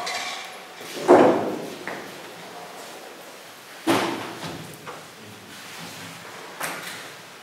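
A man speaks calmly into a microphone in a room that echoes a little.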